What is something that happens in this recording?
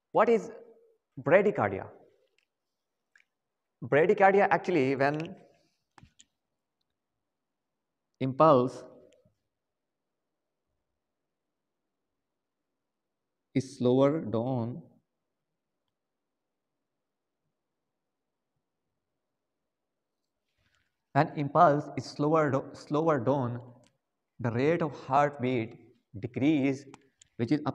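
A young man speaks calmly nearby, in short bursts with long pauses.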